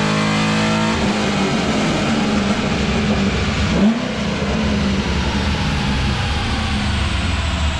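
A car engine winds down and slowly drops in pitch.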